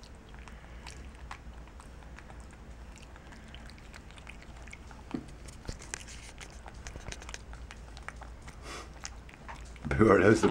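A monkey smacks its lips softly, close by.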